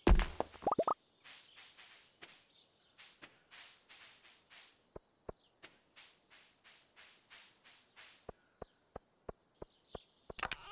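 Footsteps tap quickly across the ground.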